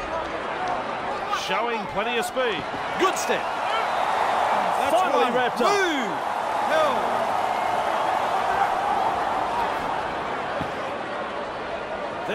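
A large stadium crowd roars steadily.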